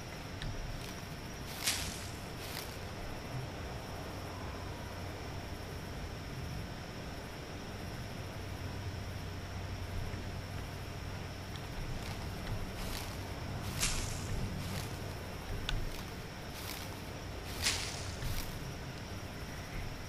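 Leaves rustle as plants are pulled by hand.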